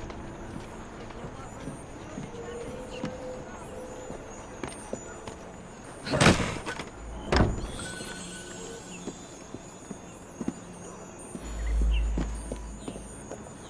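Footsteps patter across a stone rooftop.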